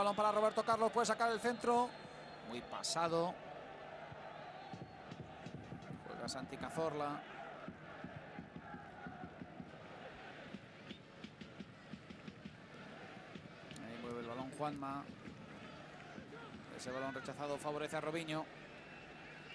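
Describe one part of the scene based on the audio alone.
A stadium crowd murmurs and cheers in the distance.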